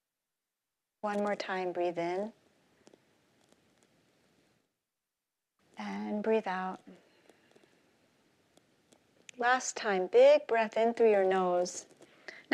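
A woman speaks with animation through a microphone, in pauses.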